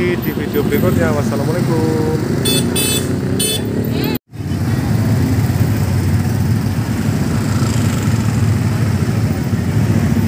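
Motorbike engines hum and rumble close by.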